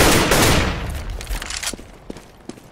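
A stun grenade bursts loudly nearby and its roar slowly fades.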